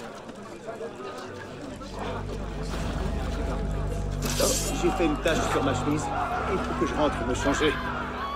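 Men grunt and shout while fighting up close.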